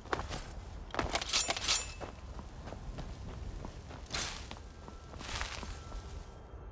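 A magic spell crackles and whooshes in short bursts.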